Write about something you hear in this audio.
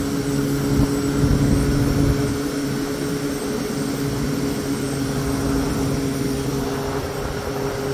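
An electric fan motor hums steadily close by.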